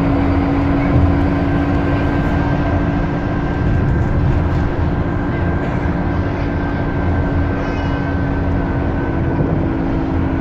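A bus interior rattles and rumbles over the road.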